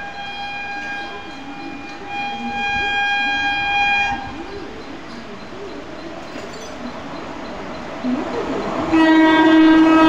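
A freight train rumbles past on the rails.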